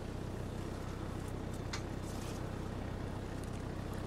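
A hand brushes and rustles through leaves.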